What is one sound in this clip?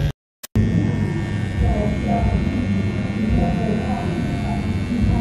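A tattoo machine buzzes steadily.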